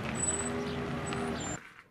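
A motorbike engine putters past.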